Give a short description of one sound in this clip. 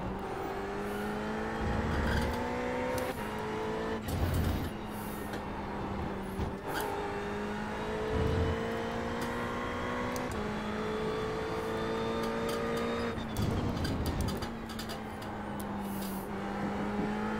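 A racing car engine roars, rising in pitch as it speeds up and dropping as it shifts gear.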